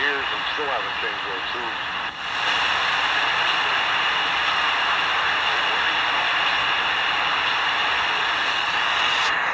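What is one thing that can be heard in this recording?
A small radio hisses with loud static between stations.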